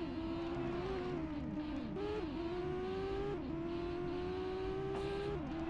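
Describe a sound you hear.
A racing car engine revs high and drops in pitch with each gear change.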